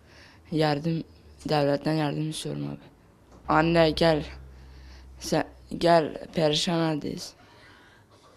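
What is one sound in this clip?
A teenage boy speaks calmly into a close microphone.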